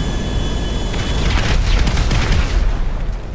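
An explosion bursts with a loud crackling blast.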